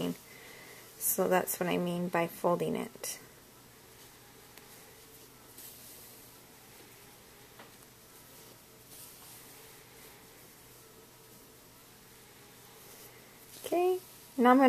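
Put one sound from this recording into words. Yarn softly rustles as a needle draws it through crocheted fabric.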